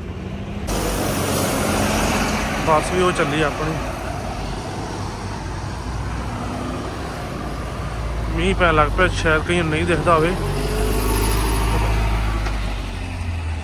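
A double-decker bus engine rumbles as the bus passes.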